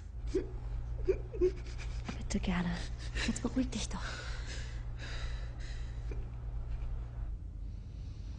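A young woman sobs and cries.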